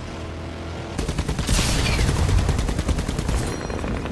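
Gunfire rattles rapidly.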